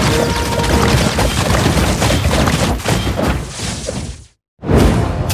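Video game battle sound effects clash and crackle rapidly.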